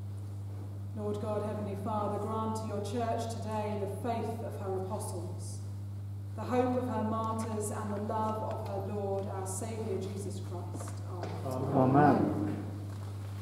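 An elderly woman reads aloud in a calm, steady voice in an echoing hall.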